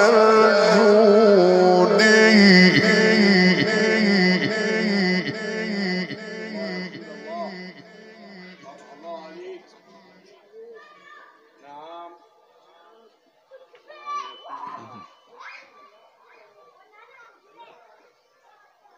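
A man chants in a long, wavering melodic voice through a microphone, loud and reverberant, then growing softer.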